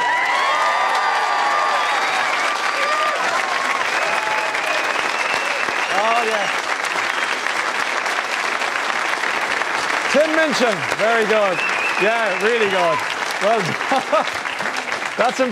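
Audience members whistle and whoop.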